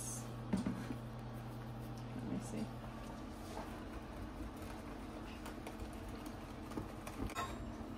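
A whisk scrapes and taps against a glass bowl.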